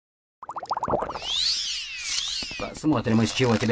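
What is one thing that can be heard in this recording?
A magic spell rings out with shimmering chimes.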